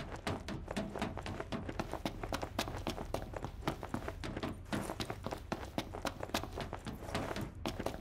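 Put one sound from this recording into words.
Footsteps run quickly on a hard metal floor.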